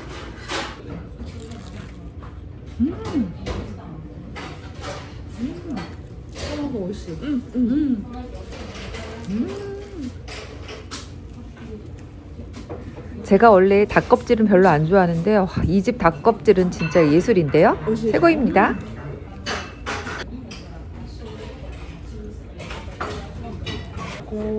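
Crispy food crunches as a young woman bites into it.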